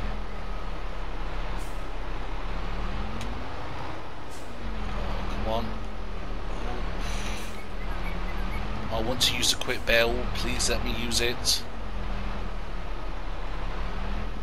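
A tractor engine idles with a low steady hum.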